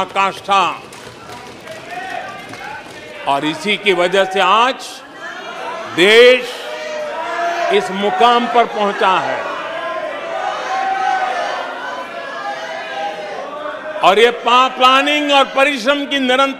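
An elderly man speaks firmly into a microphone in a large hall.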